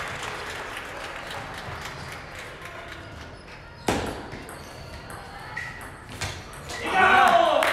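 A table tennis ball clicks back and forth off paddles and the table in an echoing hall.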